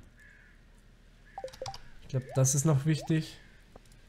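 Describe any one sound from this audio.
A short game menu chime sounds.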